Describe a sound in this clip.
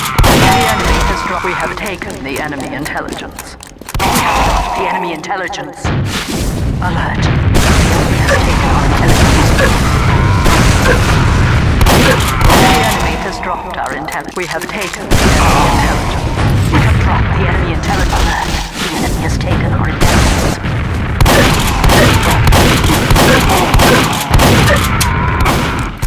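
A shotgun fires in sharp blasts.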